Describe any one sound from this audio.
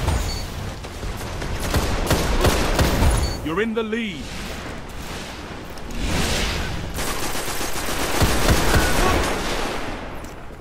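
Rapid gunfire crackles.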